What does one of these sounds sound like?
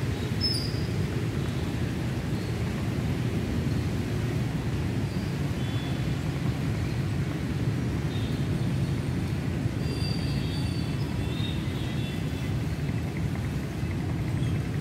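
Steady rain falls and patters on wet ground outdoors.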